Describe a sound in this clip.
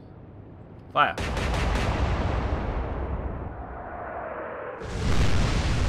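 Heavy naval guns fire with a deep boom that rumbles away.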